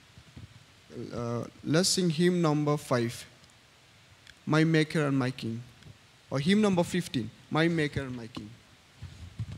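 A young man sings through a microphone in an echoing hall.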